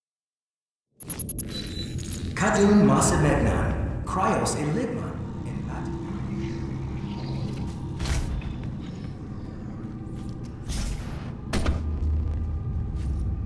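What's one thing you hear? Heavy footsteps clank on a metal floor.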